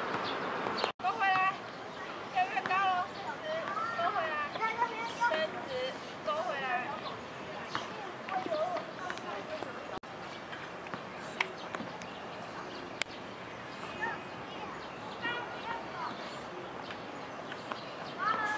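A young child chatters and squeals nearby, outdoors.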